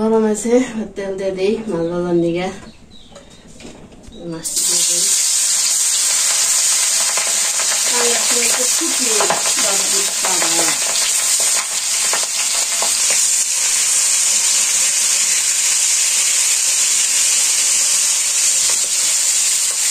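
A metal spatula scrapes and clinks against a pan.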